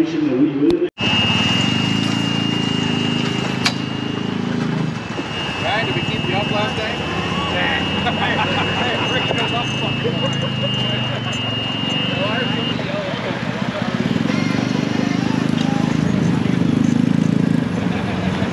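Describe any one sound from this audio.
Small motorbike engines idle and rev nearby.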